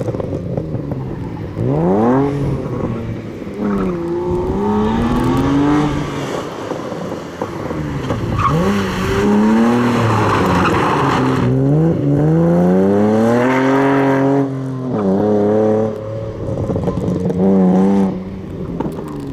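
A car engine revs hard, rising and falling as the car drifts around tight turns.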